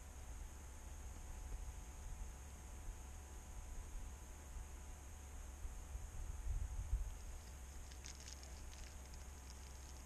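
Wind rumbles across an open hillside.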